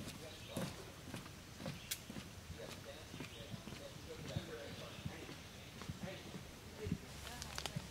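Footsteps thud softly on a wooden boardwalk outdoors.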